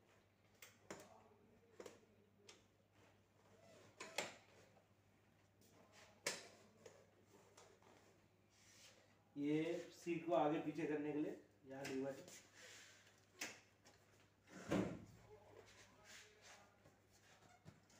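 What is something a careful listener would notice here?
Metal parts of a wheelchair click and clank.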